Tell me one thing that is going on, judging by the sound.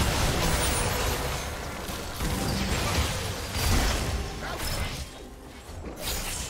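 Spell effects and weapon hits clash in a video game battle.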